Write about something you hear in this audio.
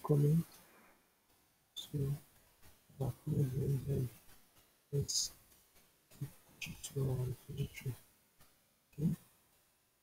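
Keys clack on a computer keyboard.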